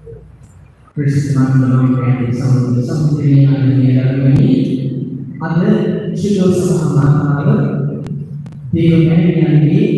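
A man chants loudly through a loudspeaker in a large echoing hall.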